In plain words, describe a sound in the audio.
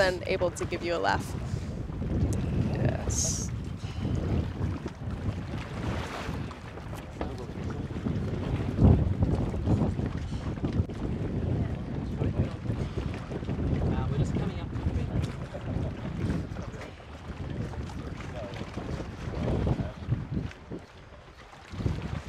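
Water splashes and laps around a diver at the surface.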